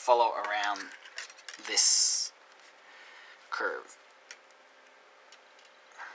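Paper rustles and crinkles as hands fold it.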